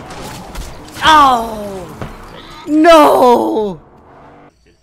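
A teenage boy shouts excitedly into a close microphone.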